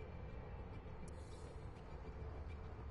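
A short electronic chime sounds once.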